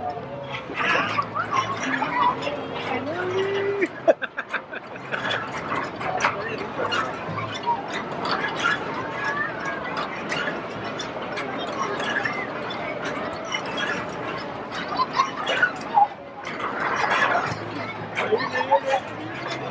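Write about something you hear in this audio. A crowd of adults and children chatters all around.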